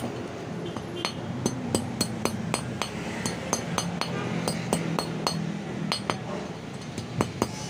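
A hammer taps repeatedly on metal.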